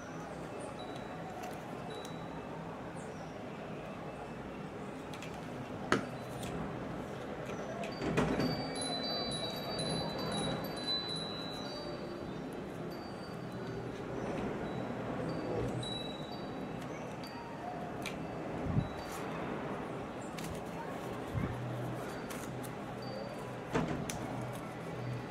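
Paper rustles softly as hands fold and press it.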